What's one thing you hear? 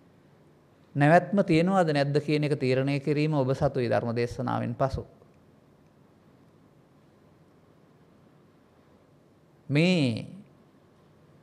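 An elderly man speaks calmly and slowly into a microphone.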